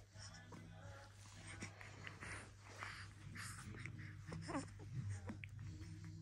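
A newborn baby makes small soft cooing and yawning sounds close by.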